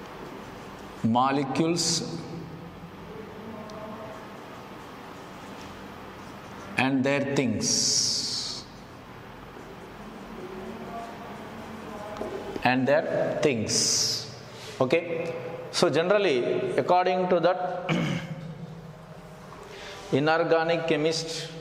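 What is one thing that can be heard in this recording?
A man speaks calmly, as if teaching.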